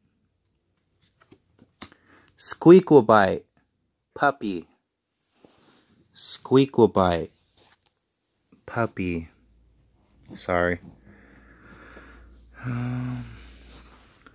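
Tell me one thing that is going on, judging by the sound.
A hand slides and flips stiff cards.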